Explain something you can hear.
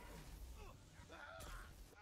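A game gun fires a crackling beam.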